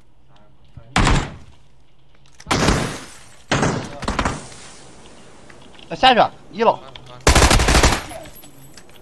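Gunshots ring out sharply.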